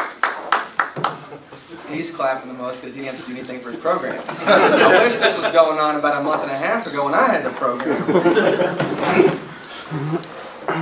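A young man speaks into a microphone with a laugh in his voice.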